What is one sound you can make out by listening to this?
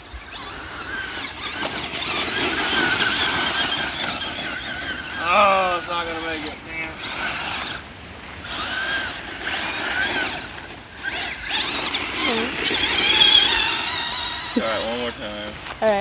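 A small electric motor whines high and revs up and down as a toy car races over dirt.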